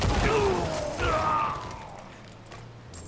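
A loud blast booms and crackles, then fades away.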